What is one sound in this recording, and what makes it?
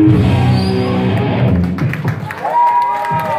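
A band plays loud rock music.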